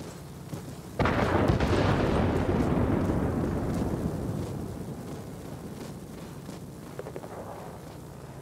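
Wind rushes loudly past a diving plane.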